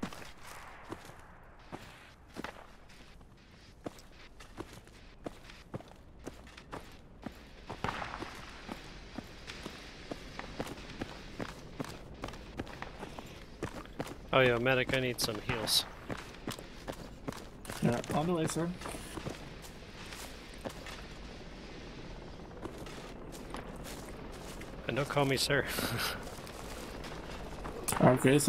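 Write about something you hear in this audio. Footsteps tread quickly and steadily on hard ground.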